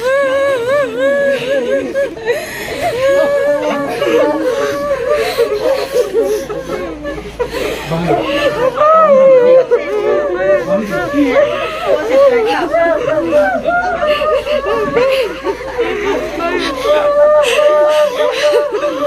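A woman wails and sobs loudly close by.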